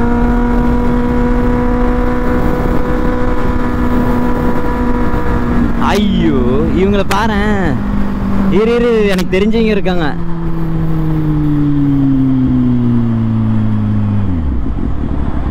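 A motorcycle engine hums steadily, then slows with a falling pitch.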